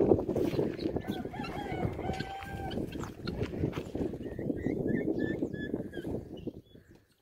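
Guineafowl call out in short, harsh, repeated cries.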